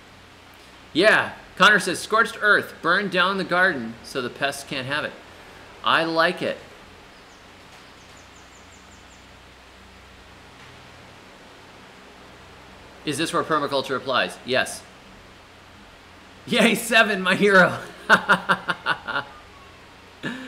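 A man speaks calmly into a close microphone, in bursts with pauses.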